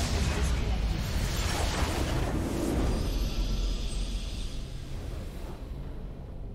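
Spells and explosions crash and whoosh in a game battle.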